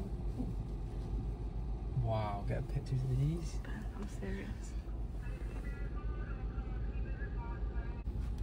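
A car engine idles with a steady low rumble, heard from inside the car.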